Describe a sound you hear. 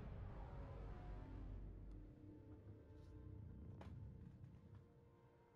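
A deep rumble roars and fades.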